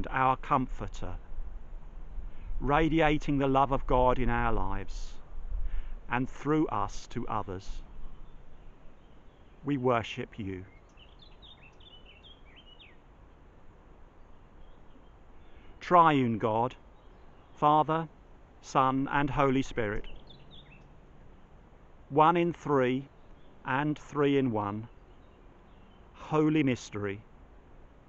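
An older man speaks calmly and slowly, close by, with long pauses.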